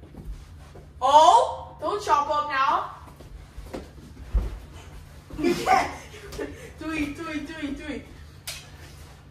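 A boy shouts excitedly nearby.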